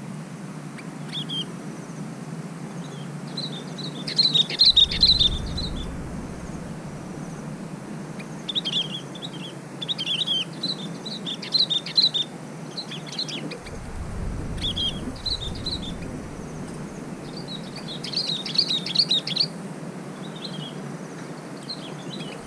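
Small birds chirp and twitter nearby, outdoors.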